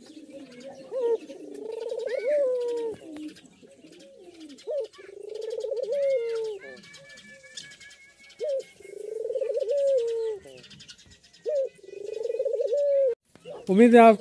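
A dove coos loudly and close by in repeated low calls.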